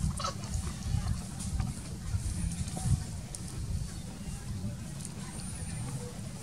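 A baby monkey squeaks softly close by.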